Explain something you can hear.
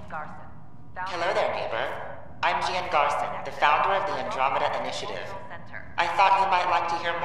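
A woman speaks calmly and warmly through a speaker, close by.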